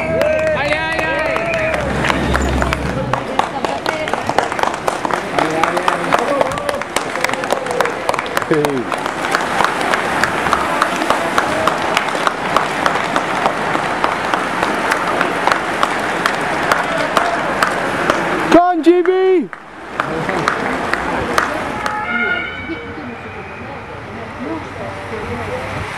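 Racing bicycles whir past in a group.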